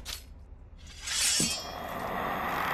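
A magic spell charges up with a rushing whoosh.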